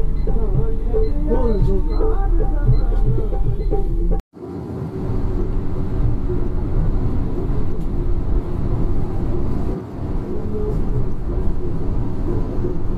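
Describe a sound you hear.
A bus engine rumbles low and steady as the bus drives along.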